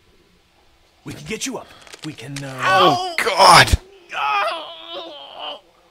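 A young boy cries out in pain and groans.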